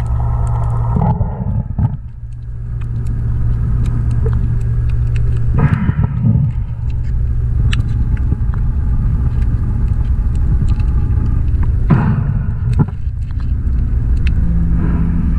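Pliers click and snap against metal wire.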